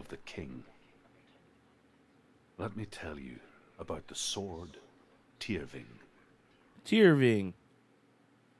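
A man speaks slowly and quietly, with long pauses.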